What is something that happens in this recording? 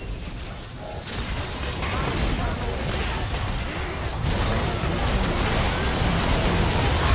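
Game spell effects whoosh and blast in a fast fight.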